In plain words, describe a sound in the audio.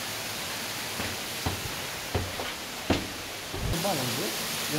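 Footsteps thud on stone stairs.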